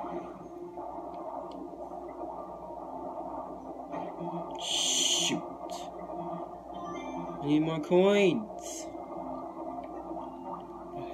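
Soft, watery game music plays steadily through a television speaker.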